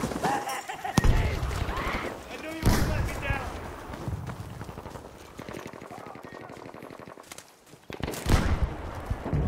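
A rifle fires loud, booming shots.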